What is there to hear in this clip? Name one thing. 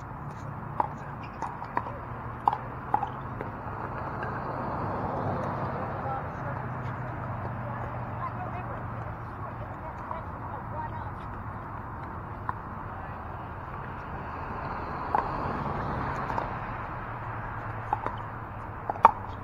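Paddles strike a plastic ball with sharp hollow pops.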